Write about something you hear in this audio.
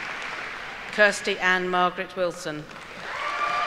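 A woman speaks clearly into a microphone in a large echoing hall.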